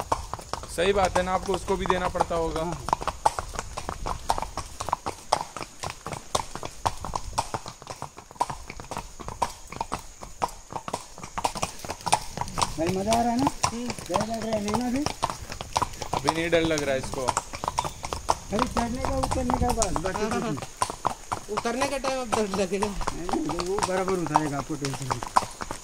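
Horse hooves clop on paving.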